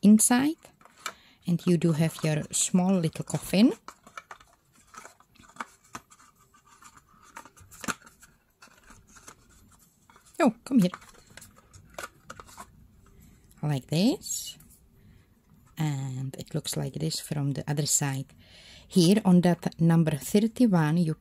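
Stiff card rustles and taps softly as hands handle it.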